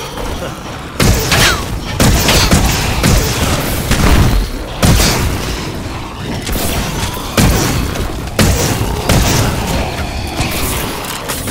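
Energy weapons fire in rapid bursts with crackling blasts.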